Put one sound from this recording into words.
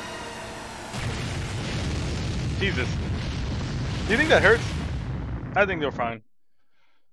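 A magical blast roars and crackles.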